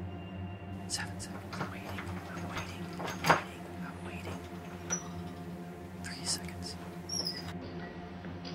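A doorknob rattles and clicks.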